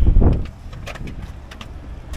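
Footsteps climb concrete stairs.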